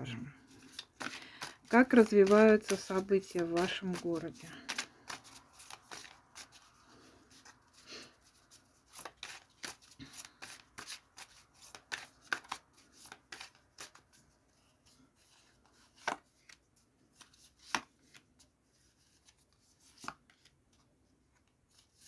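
Playing cards shuffle and riffle with quick soft flicks.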